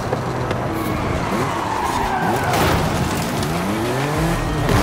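Tyres screech as a car drifts through a turn.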